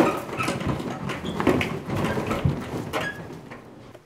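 Footsteps thud up carpeted stairs.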